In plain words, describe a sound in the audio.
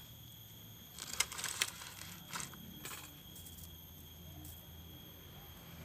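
A coil of wire rustles and clinks as it is handled.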